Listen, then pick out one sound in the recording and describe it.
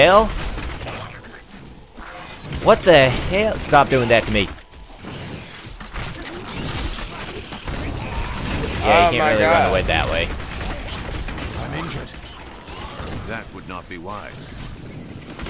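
Fiery spells crackle and burst in a fight.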